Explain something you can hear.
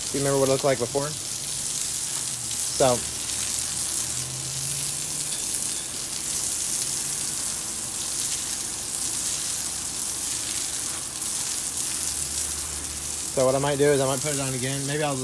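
A garden hose sprays water against a wall with a steady hiss and splatter.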